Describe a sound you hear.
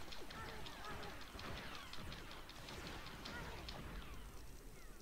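Blaster shots zap rapidly in a video game.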